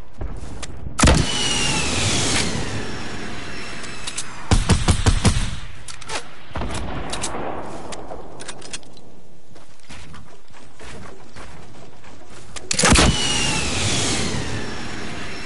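A rocket launches with a loud whoosh and explodes.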